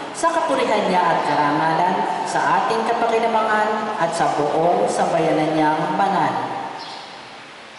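A man chants a melody through a microphone, echoing in a large hall.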